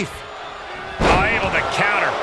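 A heavy thud of a body slamming onto a wrestling ring mat.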